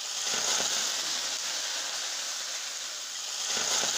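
A metal spoon scrapes and stirs inside a frying pan.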